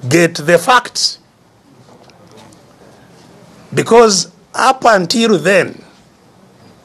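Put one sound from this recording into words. An elderly man speaks with animation in short bursts.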